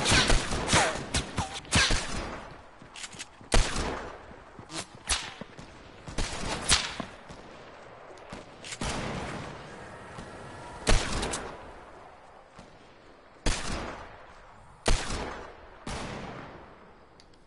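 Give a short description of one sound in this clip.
Game gunshots and building sounds bang and clatter in quick bursts.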